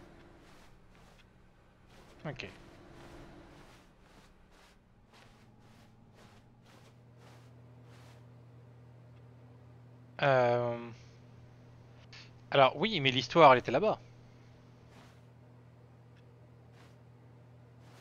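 Footsteps tap softly on a carpeted floor at a steady walking pace.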